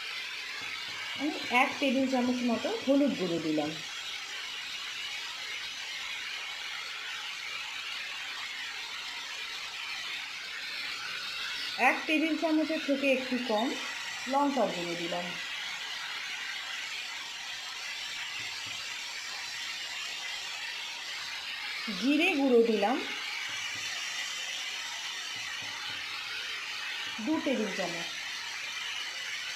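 Vegetables sizzle steadily in a hot pan.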